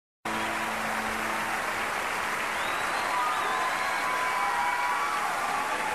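A large crowd cheers and applauds loudly in a big echoing hall.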